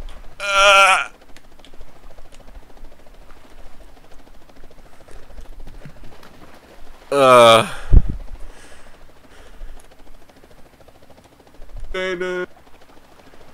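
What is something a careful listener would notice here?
A high, cartoonish voice yelps and cries out excitedly.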